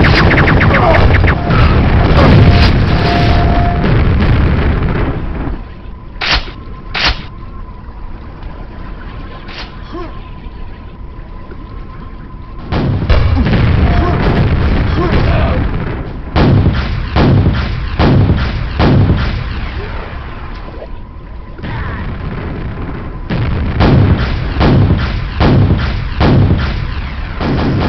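Gunshots fire rapidly in quick bursts.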